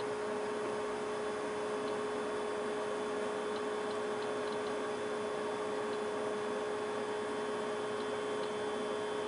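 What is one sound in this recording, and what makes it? A small electric motor hums steadily close by.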